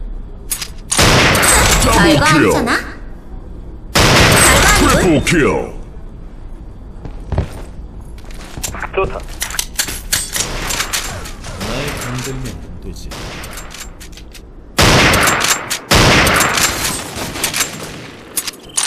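A rifle fires loud shots that echo.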